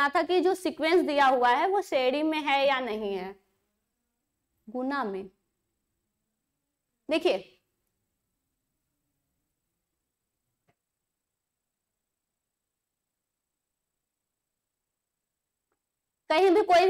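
A young woman speaks with animation, close to a microphone, in short bursts with long pauses.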